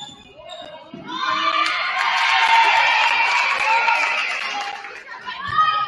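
A crowd cheers loudly in a large echoing gym.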